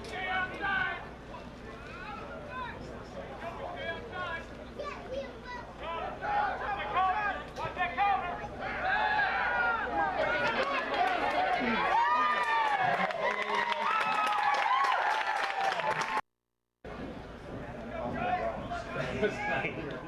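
A crowd of spectators cheers and shouts outdoors, growing louder.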